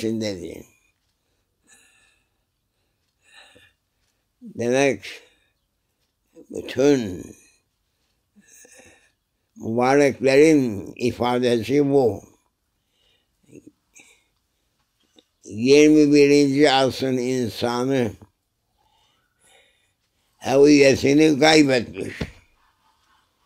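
An elderly man speaks slowly and calmly, close by, in short phrases with long pauses.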